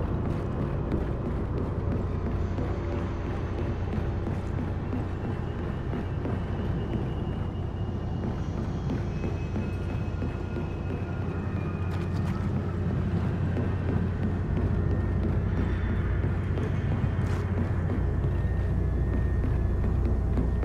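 Heavy armoured footsteps thud on a metal floor.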